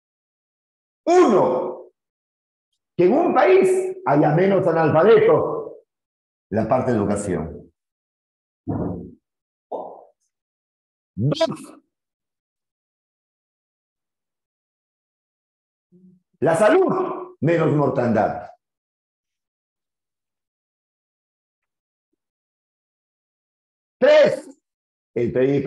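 A man speaks with animation into a close microphone, in bursts with pauses.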